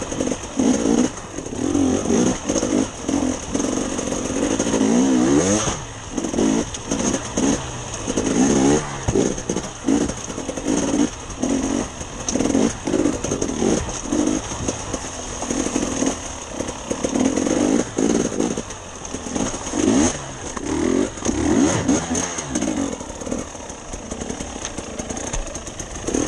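A dirt bike engine revs hard and pulses, close by.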